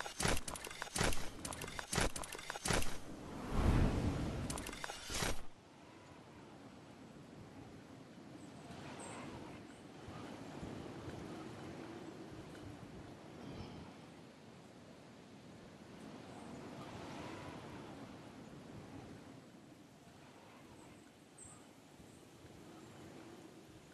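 Wind rushes past loudly during a fall, then turns to a softer steady whoosh.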